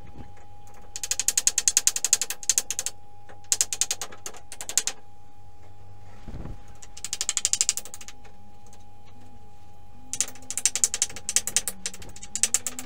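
A hand saw cuts through a wooden board in quick bursts of strokes.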